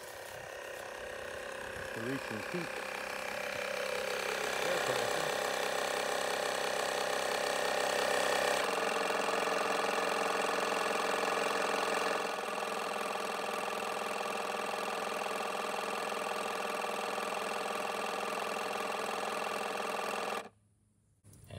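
An air compressor motor hums and rattles steadily close by, then stops.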